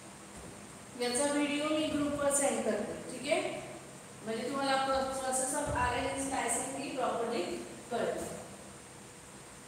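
A young woman speaks clearly, as if teaching.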